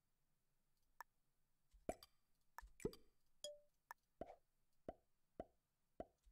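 Video game sound effects click and thud in quick succession.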